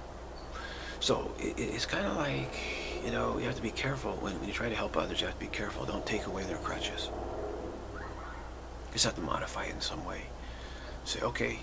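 A middle-aged man speaks calmly, close to the microphone.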